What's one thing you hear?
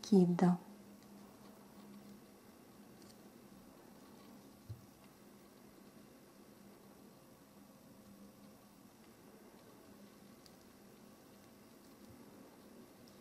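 A crochet hook softly rustles and clicks against yarn.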